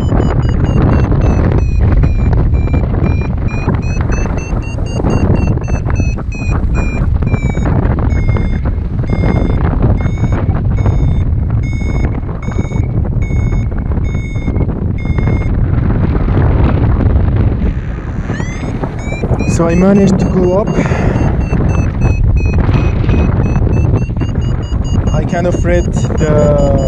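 Strong wind rushes and buffets steadily outdoors.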